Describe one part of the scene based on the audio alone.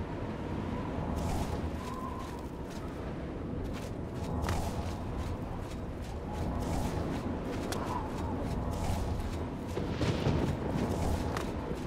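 A spell hums and shimmers softly.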